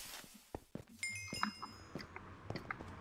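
A bright game chime rings out.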